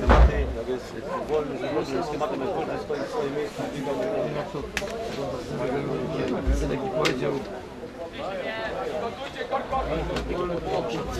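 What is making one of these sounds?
Young men call out and talk across an open field.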